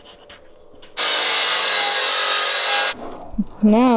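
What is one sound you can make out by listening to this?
A power saw screams through a board.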